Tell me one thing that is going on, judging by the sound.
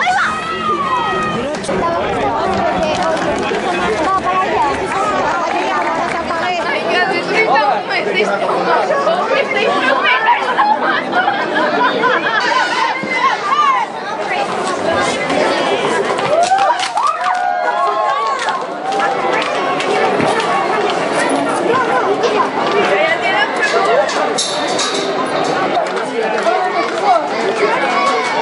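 A crowd of people shouts and cheers excitedly outdoors.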